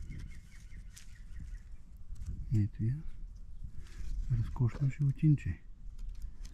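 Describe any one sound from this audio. A snake slithers through dry grass with a faint rustle.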